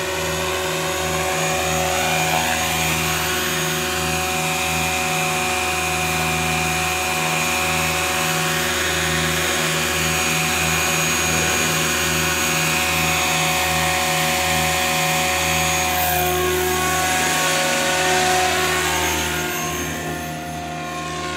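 A model helicopter's rotor whirs with a steady high whine.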